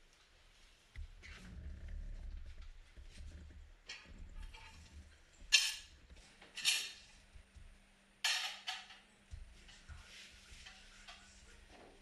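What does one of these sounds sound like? Plates and cutlery clatter on a table.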